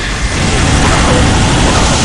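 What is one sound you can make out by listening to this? A plasma gun fires crackling bursts.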